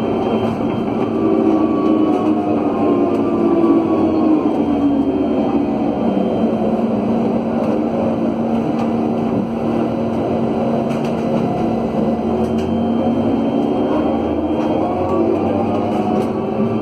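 A motorcycle engine rumbles close by, rising and falling in pitch.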